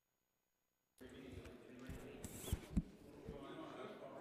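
Several people murmur and chat in a large room.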